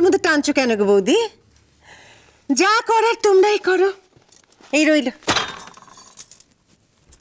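A woman speaks sharply with animation, close by.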